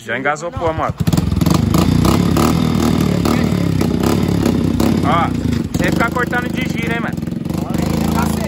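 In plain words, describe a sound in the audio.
A motorbike engine starts and idles with a loud rumble.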